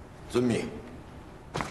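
A man answers briefly in a firm voice.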